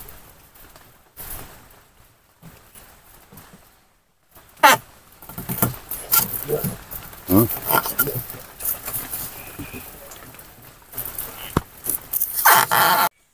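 Bamboo poles knock and rattle as they are handled.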